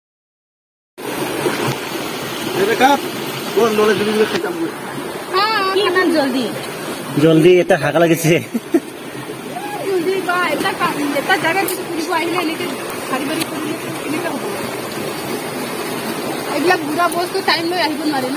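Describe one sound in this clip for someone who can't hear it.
A stream flows and gurgles over rocks nearby.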